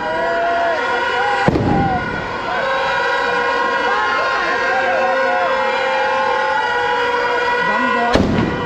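Fireworks crackle and hiss steadily.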